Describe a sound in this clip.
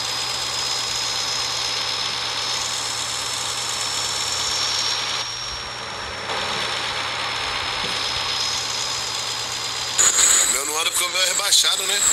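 Tyres crunch over a dirt road.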